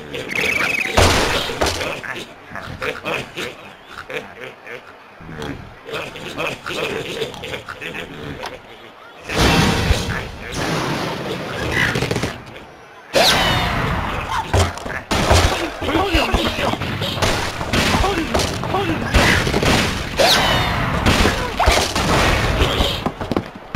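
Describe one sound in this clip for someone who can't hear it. Cartoon pigs squeal and pop.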